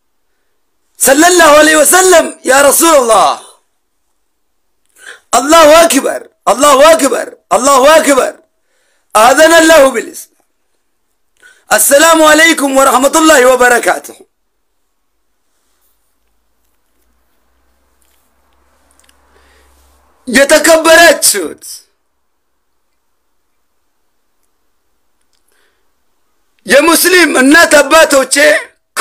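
A young man speaks with animation close to a microphone, in short bursts with pauses.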